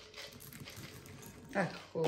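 Chocolate chips patter into a glass bowl.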